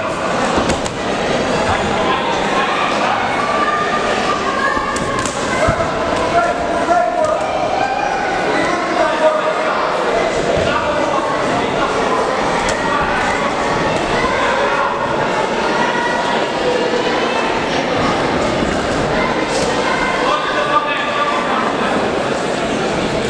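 Boxing gloves thud against each other and the fighters.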